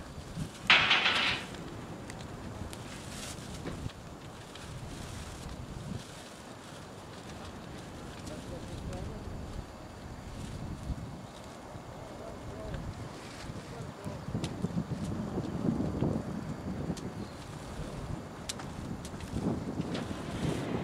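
A large fuel fire roars and rumbles outdoors.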